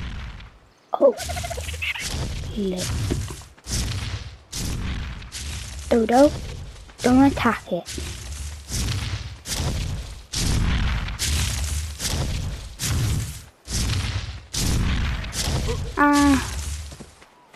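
A large creature gives deep, groaning calls.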